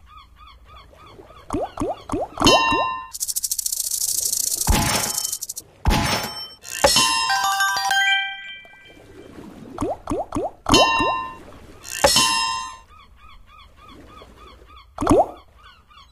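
Electronic slot machine chimes and jingles ring out in bursts.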